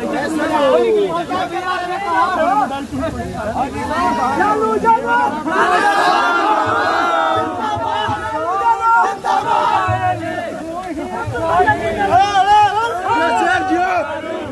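A young man speaks loudly into a microphone.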